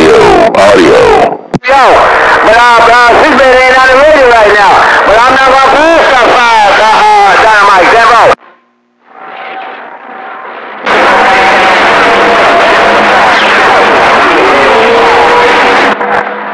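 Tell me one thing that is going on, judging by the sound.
Warbling, whistling tones rise and fall through the static of a radio.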